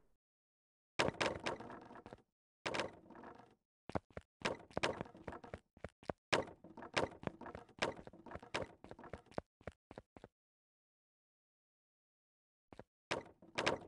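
Building pieces snap into place in quick clicking bursts.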